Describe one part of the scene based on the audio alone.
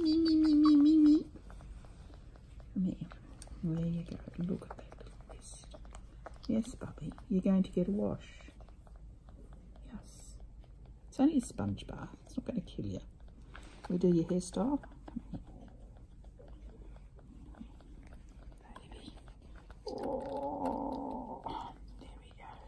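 A baby bat suckles softly with quiet wet smacks.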